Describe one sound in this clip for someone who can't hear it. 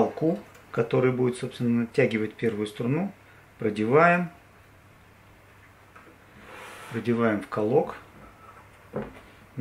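A guitar string scrapes and rustles as it is threaded.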